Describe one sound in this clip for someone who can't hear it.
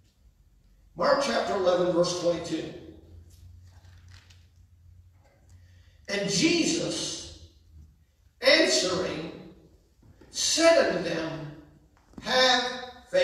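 A man speaks through a microphone in bursts, with pauses, in a large room with an echo.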